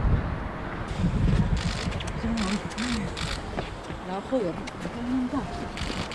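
Several men talk and greet each other close by.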